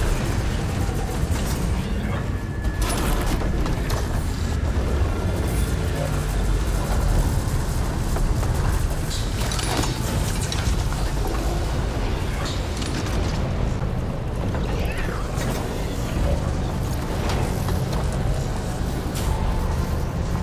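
Metal clanks and thuds sound now and then as footsteps land on metal.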